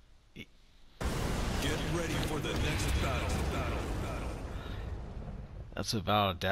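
A fiery whoosh rushes past.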